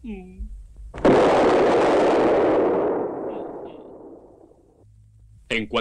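A loud explosion booms and slowly fades.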